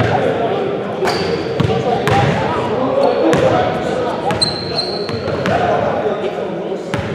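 Several young men talk over one another in an echoing gym.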